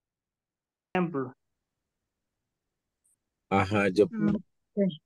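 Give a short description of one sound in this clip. A middle-aged woman speaks briefly and calmly over an online call.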